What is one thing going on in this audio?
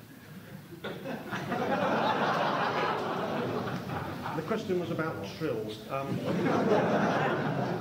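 A tuba plays low notes.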